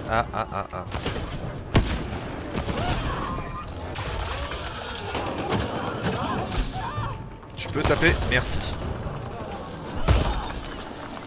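Blasts and impacts crack and boom.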